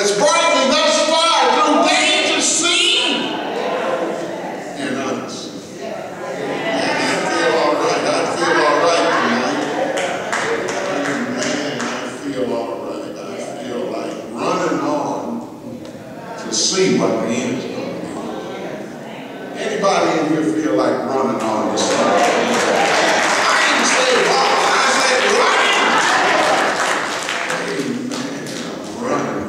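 An elderly man preaches with animation into a microphone, heard through loudspeakers in an echoing hall.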